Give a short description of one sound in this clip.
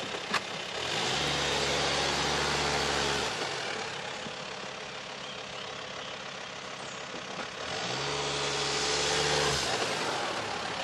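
A car engine hums as a car drives slowly up and stops.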